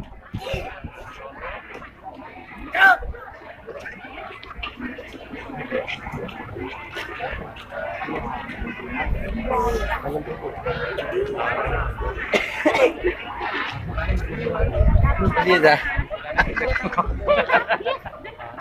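A crowd chatters outdoors nearby.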